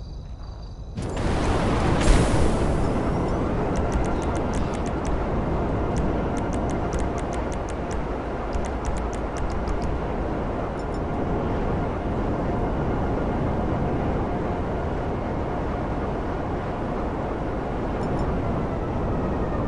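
A motorbike engine roars steadily.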